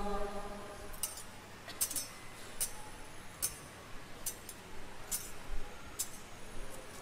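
Censer chains clink in short metallic rattles.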